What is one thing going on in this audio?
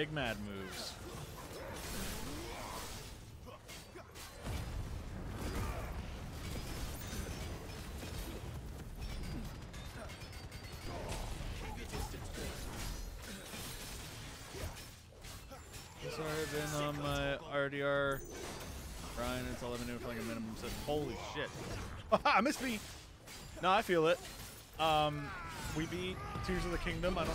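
Magic blasts boom and crackle.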